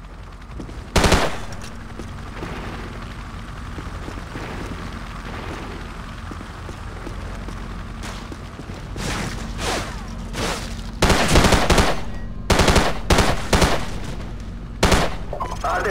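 A rifle fires sharp, loud shots in bursts.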